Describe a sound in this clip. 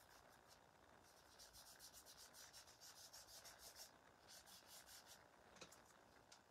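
A stiff brush scratches and dabs on a paper surface.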